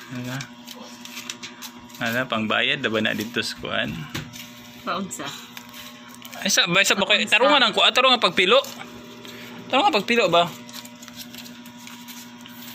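Banknotes rustle in a woman's hands.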